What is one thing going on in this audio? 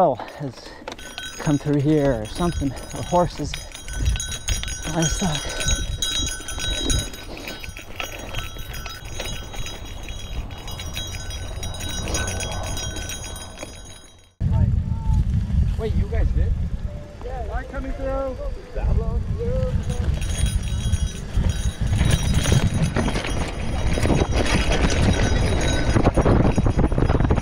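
Bicycle tyres crunch and rattle over a rough dirt trail.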